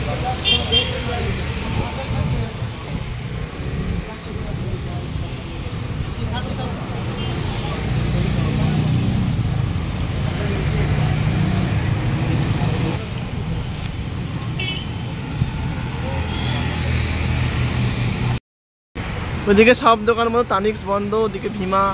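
Traffic rumbles steadily along a street outdoors.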